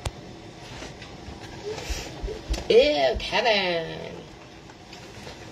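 Cardboard boxes rustle and tap as they are handled.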